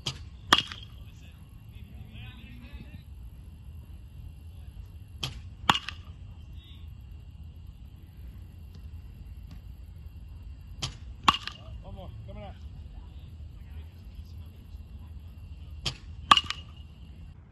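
A metal bat cracks sharply against a baseball.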